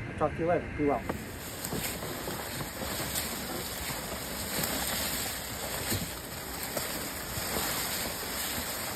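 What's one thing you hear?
A sled scrapes and drags over dry leaves.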